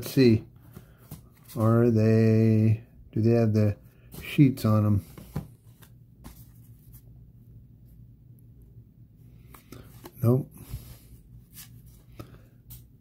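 Trading cards rustle and tap softly as they are handled.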